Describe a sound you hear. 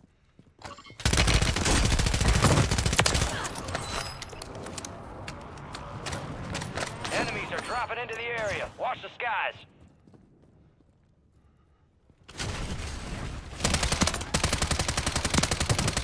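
Rapid gunfire bursts loudly and close by.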